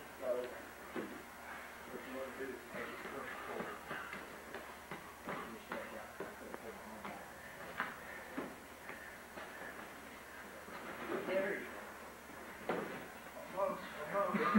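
Bodies thump and scuffle on a padded mat.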